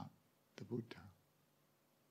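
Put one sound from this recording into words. A man speaks calmly and briefly into a microphone.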